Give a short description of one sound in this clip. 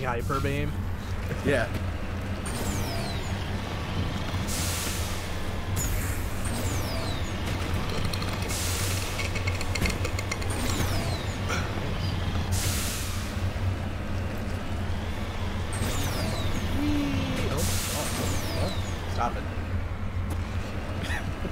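A heavy vehicle's engine hums steadily as it drives over rough ground.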